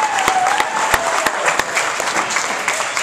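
People clap their hands sharply.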